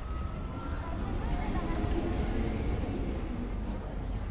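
A broom sweeps across pavement with a scratchy brushing.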